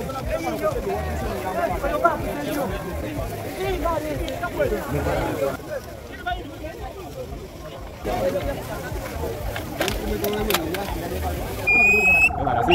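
A crowd of people chatter outdoors.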